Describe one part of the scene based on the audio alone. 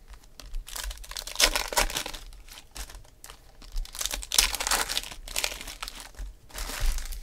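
Hands rustle and shuffle through crinkling foil card packs.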